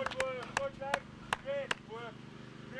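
A man claps his hands sharply outdoors.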